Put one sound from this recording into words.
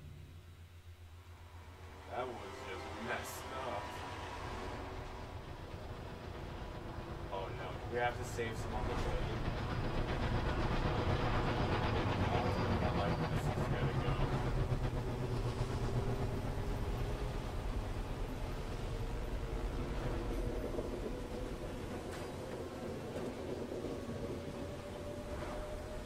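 A deep, heavy rumble of a huge machine swells and then slowly eases.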